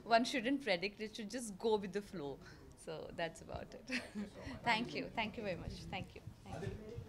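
A woman speaks with animation close to microphones.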